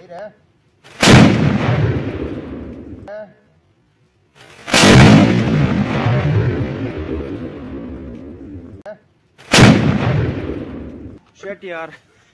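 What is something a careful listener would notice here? Firecrackers bang loudly and crackle outdoors.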